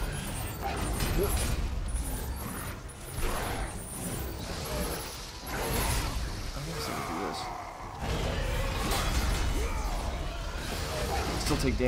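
Heavy blows thud with a deep rumble.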